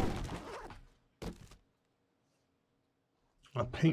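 A cardboard box rustles as it is searched.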